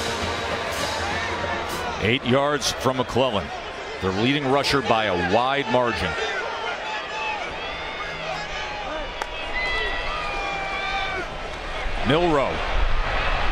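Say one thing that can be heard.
A large stadium crowd roars and cheers outdoors.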